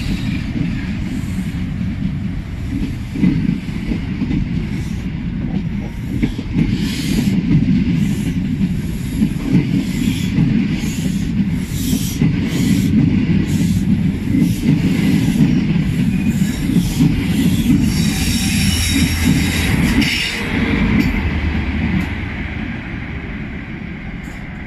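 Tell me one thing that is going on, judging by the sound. A train rushes past close by with a loud rumble.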